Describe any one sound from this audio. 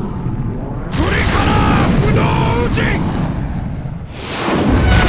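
A man shouts fiercely.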